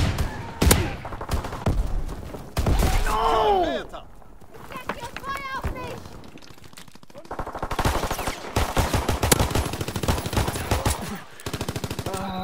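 Gunshots fire in quick, sharp bursts.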